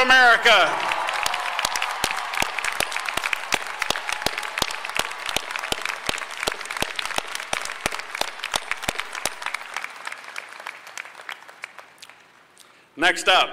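A large outdoor crowd applauds and cheers, slowly dying down.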